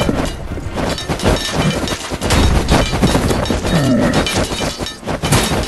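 Swords clash and clang in a busy battle.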